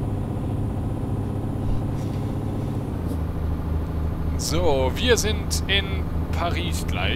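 A truck's diesel engine drones while cruising on a motorway.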